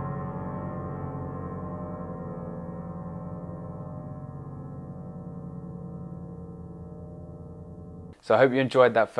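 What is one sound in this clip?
A piano plays a held chord that slowly rings out and fades.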